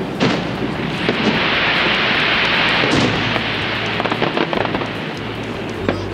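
Burning fireworks crackle and fizz.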